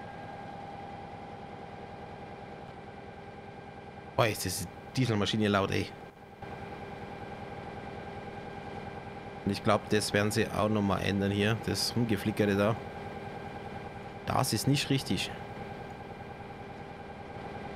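A diesel locomotive engine hums steadily.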